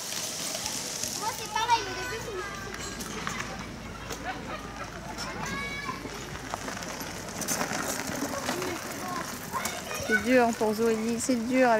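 Young children call out and chatter nearby outdoors.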